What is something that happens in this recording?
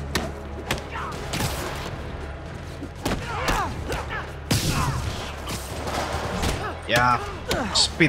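Punches and blows thud during a fight.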